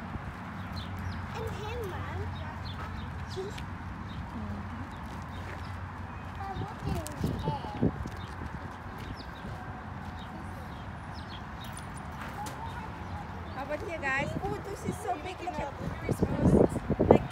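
Small children talk and squeal excitedly nearby.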